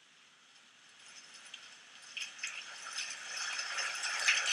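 Clothing rustles close by.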